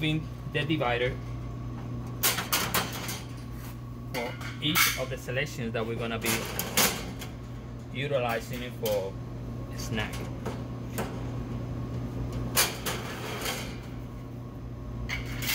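Thin metal dividers rattle and clatter.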